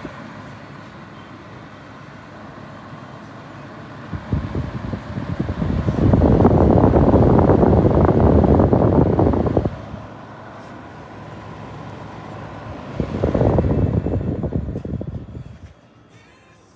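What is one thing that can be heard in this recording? An electric heater's fan whirs with a steady rush of air that swells louder at times.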